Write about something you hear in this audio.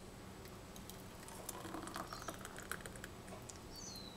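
Thick sauce pours into a glass jar.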